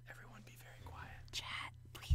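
A young woman laughs through an online call.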